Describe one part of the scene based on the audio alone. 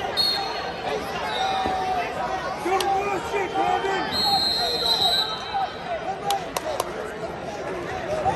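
A crowd in a large echoing arena murmurs and cheers.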